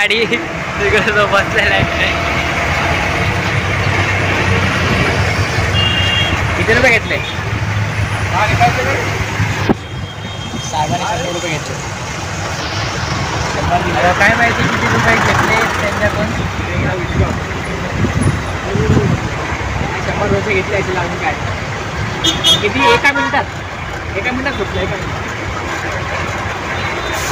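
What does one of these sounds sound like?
Traffic rumbles steadily outdoors on a busy road.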